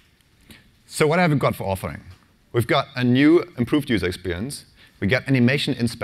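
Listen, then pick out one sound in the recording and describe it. A man speaks calmly through a microphone to an audience.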